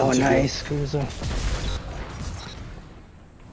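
A loud burst booms and hisses in a video game.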